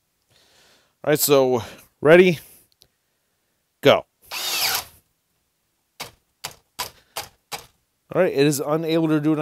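A power drill whirs in short bursts as a bit bores into wood.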